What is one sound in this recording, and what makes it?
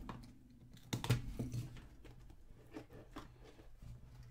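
Plastic wrap crinkles and tears.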